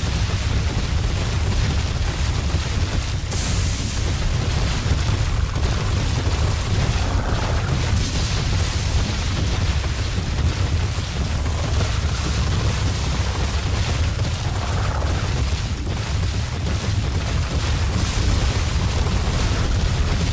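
A volcano rumbles deeply and steadily.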